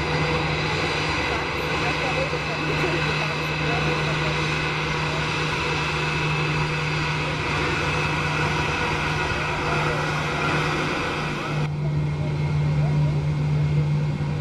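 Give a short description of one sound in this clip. A jet airliner's engines hum and whine steadily as the plane taxis close by.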